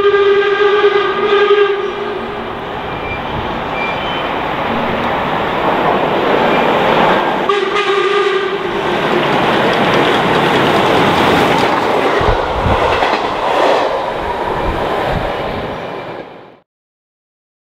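A steam train rumbles and clatters past at speed.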